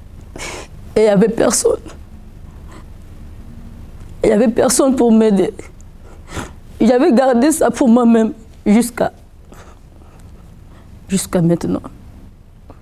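A woman speaks calmly and clearly into a close microphone, with pauses between phrases.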